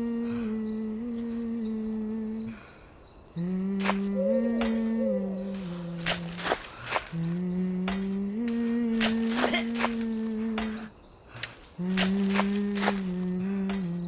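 A shovel scrapes and digs into loose earth.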